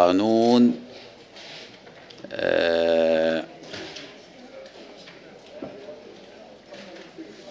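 An elderly man reads out calmly into a microphone.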